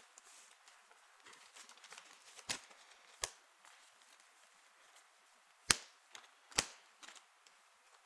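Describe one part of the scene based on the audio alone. Cards riffle softly in a hand.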